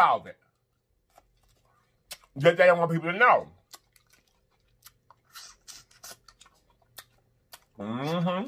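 A man sucks and smacks his lips while eating.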